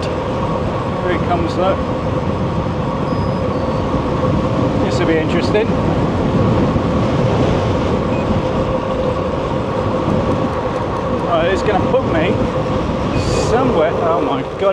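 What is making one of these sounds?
Bicycle tyres hum steadily on smooth tarmac.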